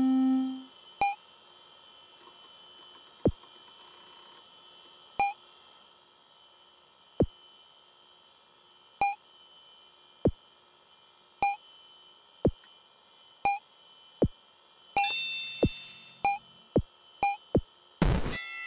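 Short electronic game beeps sound as a block bounces back and forth.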